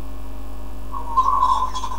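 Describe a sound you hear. A man speaks through a small phone speaker.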